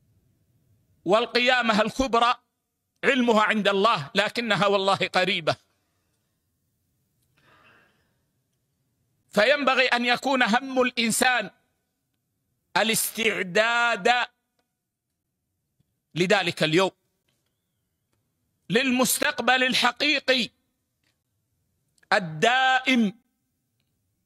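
An elderly man speaks slowly and calmly into a microphone, in phrases broken by pauses.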